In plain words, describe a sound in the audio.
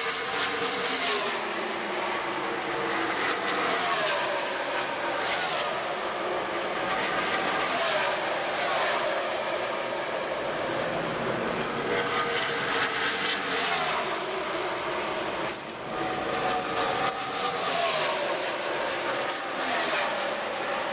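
Race car engines roar loudly as cars speed past one after another.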